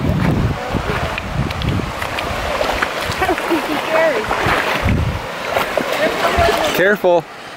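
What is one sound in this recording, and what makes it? Water splashes as a small child wades through a shallow stream.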